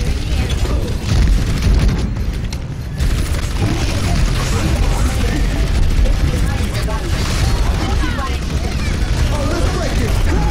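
Gunfire and explosions crackle from a video game.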